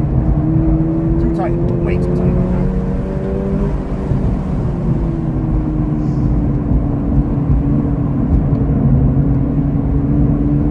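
Wind rushes loudly past a fast-moving car.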